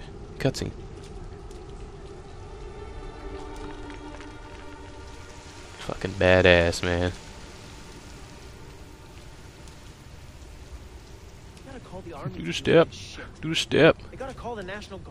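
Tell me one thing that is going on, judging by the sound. Footsteps walk slowly over wet pavement.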